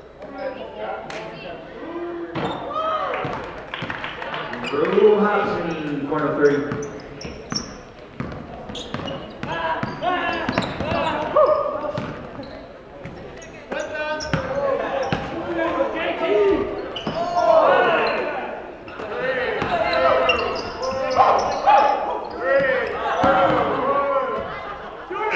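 Sneakers squeak on a hard court in a large echoing gym.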